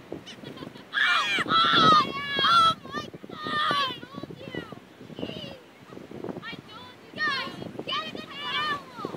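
Seagulls squawk and cry loudly nearby.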